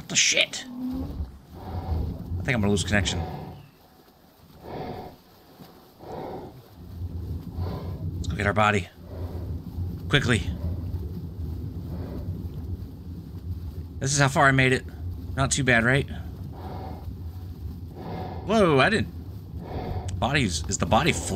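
A low underwater rumble hums steadily.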